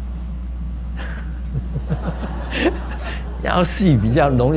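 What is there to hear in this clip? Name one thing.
An elderly man laughs.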